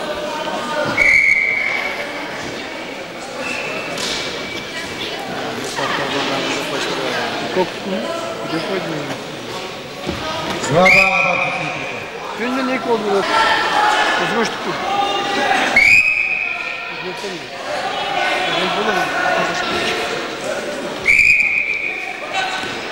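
A referee blows a whistle in short sharp blasts.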